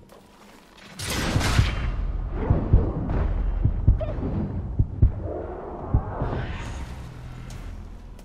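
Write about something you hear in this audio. Heavy weapon blows thud and crash in a fierce fight.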